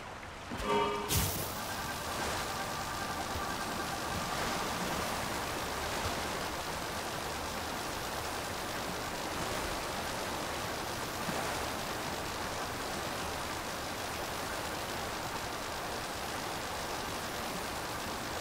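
A fan motor whirs steadily.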